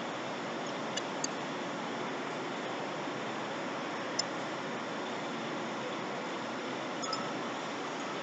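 A wrench clicks against metal lug nuts.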